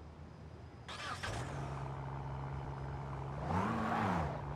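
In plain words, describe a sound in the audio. A car engine starts and idles.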